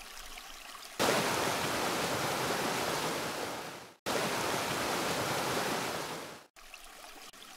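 A geyser erupts with a loud rushing roar.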